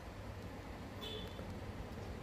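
A wristwatch beeps softly.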